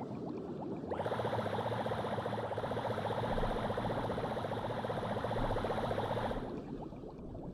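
A small submarine engine hums steadily.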